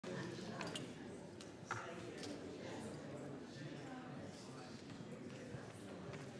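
A man speaks calmly over a microphone in a large echoing hall.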